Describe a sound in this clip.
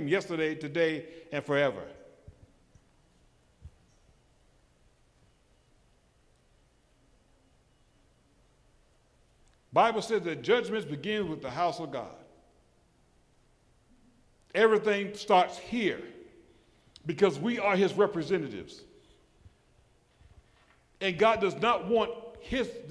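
A middle-aged man preaches with animation through a microphone, in bursts with long pauses.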